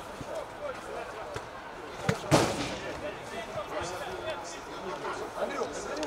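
A football thuds as it is kicked on an outdoor pitch.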